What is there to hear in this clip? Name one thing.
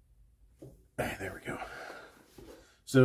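A cardboard box slides across a wooden table.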